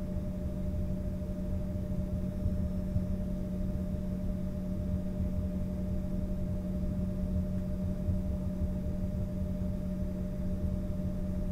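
Jet engines hum steadily in a low drone, heard from inside an aircraft cabin.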